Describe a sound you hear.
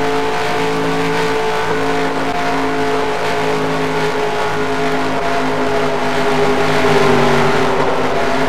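A stock car engine roars at full throttle in a racing game.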